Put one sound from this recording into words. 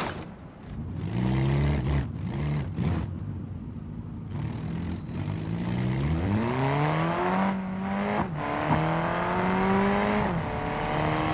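A car engine revs and rises in pitch as it accelerates.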